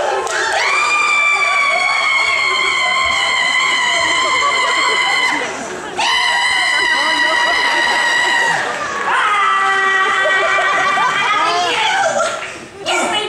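A woman sings long, held notes loudly through a sound system in a large hall.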